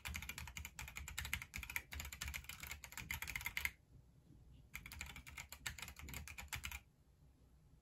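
Keyboard keys clatter rapidly in quick bursts.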